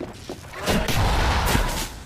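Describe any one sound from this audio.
A weapon fires with loud bursts.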